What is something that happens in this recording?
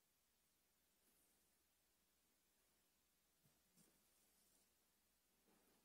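Cloth and paper rustle softly as they are handled.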